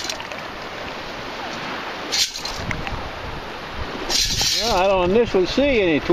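Shallow water splashes as feet wade through it.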